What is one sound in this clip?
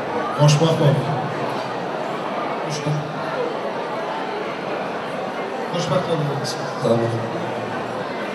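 A man speaks through a microphone and loudspeaker in a large echoing hall.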